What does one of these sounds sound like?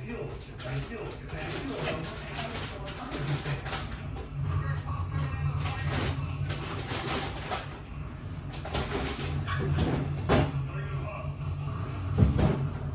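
A refrigerator hums low and steadily.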